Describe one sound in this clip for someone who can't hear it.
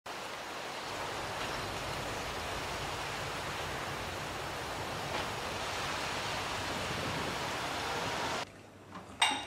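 Wind rustles through leafy trees outdoors.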